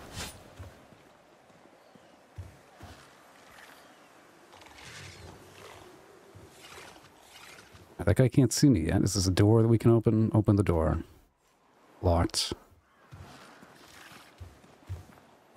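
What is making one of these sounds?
Footsteps tap softly on wooden boards and stone.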